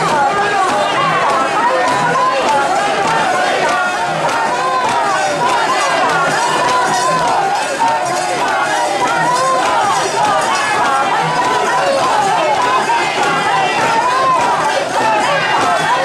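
A large crowd of men and women chants and shouts loudly close by, outdoors.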